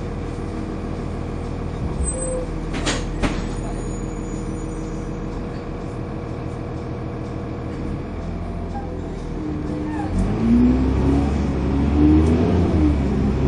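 A bus engine hums and rumbles steadily from inside the bus.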